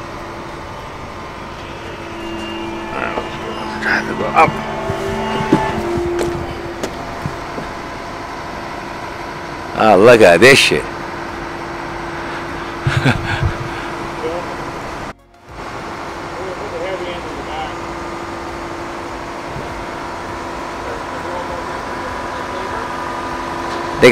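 A crane's diesel engine hums steadily nearby.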